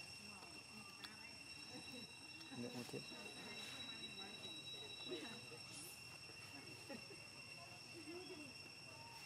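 Dry leaves rustle and crackle as small monkeys move about on them.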